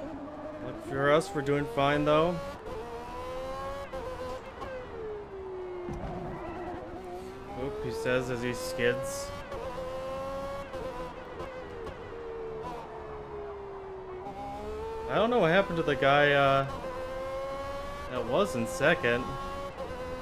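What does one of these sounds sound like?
Tyres squeal in short bursts as a racing car slides through corners.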